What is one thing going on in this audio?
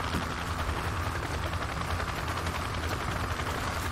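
A helicopter drones overhead with a steady beating rotor.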